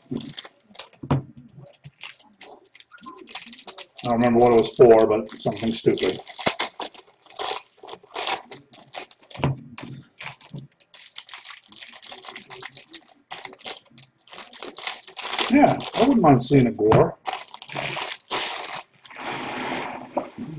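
Foil wrappers crinkle and rustle as card packs are torn open.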